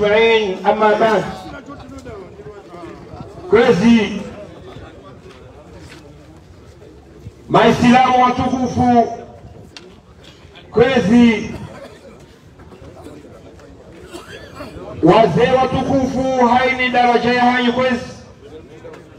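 A middle-aged man speaks forcefully in bursts through a loudspeaker, outdoors.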